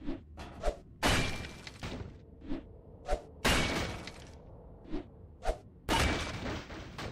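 An axe strikes wooden boards with heavy thuds.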